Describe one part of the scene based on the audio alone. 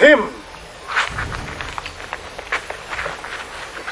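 Feet shuffle and stamp on bare ground.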